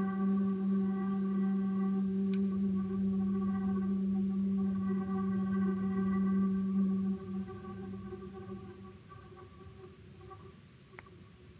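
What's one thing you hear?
A double bass is bowed in a long, steady low note that then fades away in an echoing room.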